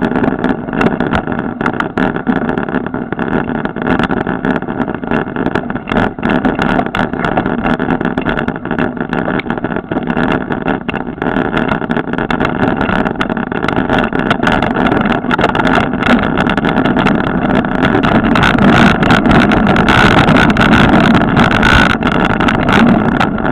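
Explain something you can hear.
Bicycle tyres roll and rattle over a bumpy dirt trail.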